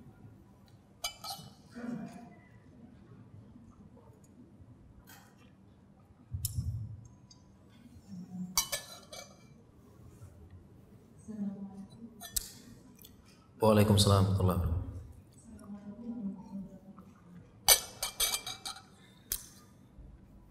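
A glass clinks and knocks against a table.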